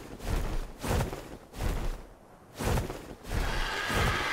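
A large bird beats its wings with heavy whooshes.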